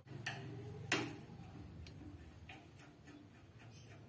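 Metal parts clink as a screwdriver works on a small fitting.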